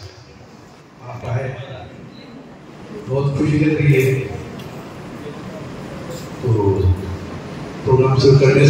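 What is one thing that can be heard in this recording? A man sings into a microphone, heard loudly through loudspeakers in a large echoing hall.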